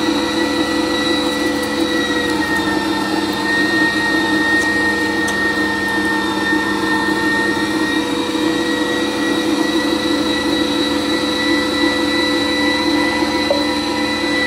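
Meat squelches as it is pushed into a grinder.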